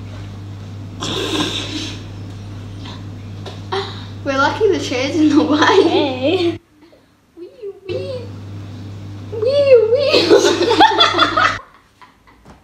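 Two young girls laugh loudly close by.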